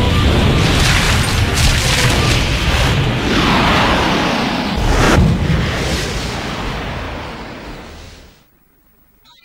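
A huge explosion roars and slowly fades away.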